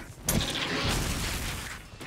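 An explosion bursts with a shower of sparks.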